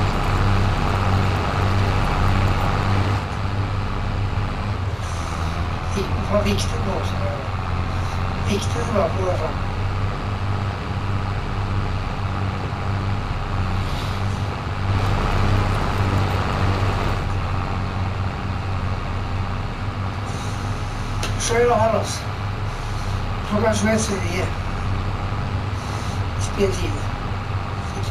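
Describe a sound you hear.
A tractor engine hums steadily as the tractor drives along.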